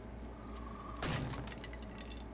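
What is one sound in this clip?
An axe strikes a tree trunk with a sharp thud.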